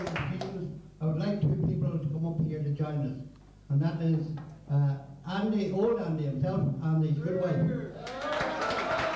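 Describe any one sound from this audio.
A middle-aged man speaks loudly into a microphone, heard through a loudspeaker.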